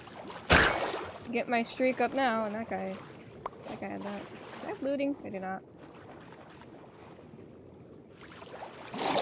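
Water splashes softly as a game character swims underwater.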